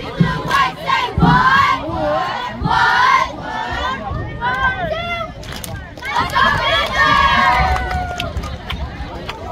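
A group of young girls chants and shouts loudly outdoors.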